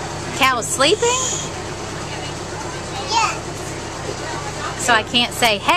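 A young boy speaks in short high-pitched bursts close by.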